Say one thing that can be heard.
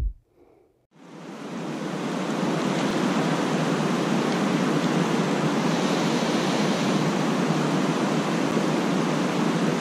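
Water rushes and churns steadily.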